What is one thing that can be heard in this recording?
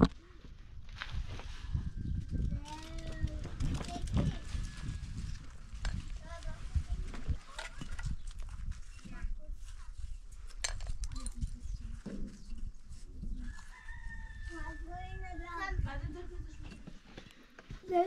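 A trowel taps and scrapes on bricks.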